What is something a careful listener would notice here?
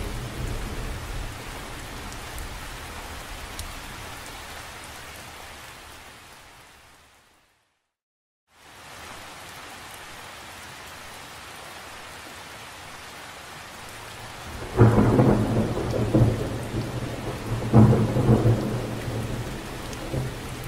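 Raindrops patter steadily on the surface of a lake.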